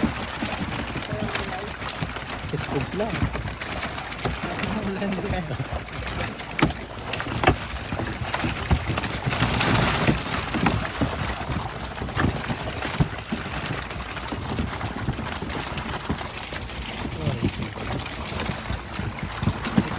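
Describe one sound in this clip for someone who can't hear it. Fish flap and splash in shallow water in a tank.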